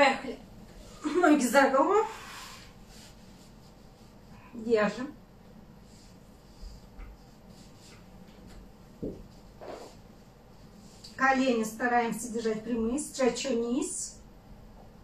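A young woman speaks in short strained bursts close by.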